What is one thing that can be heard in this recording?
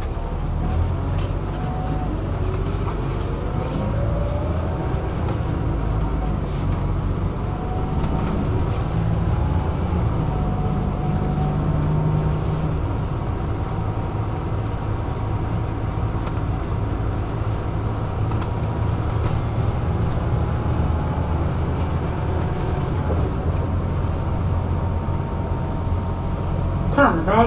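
A bus engine hums and rumbles steadily while driving along a road.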